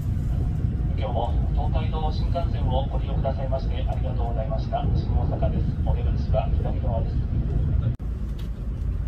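A train rumbles steadily, heard from inside a carriage.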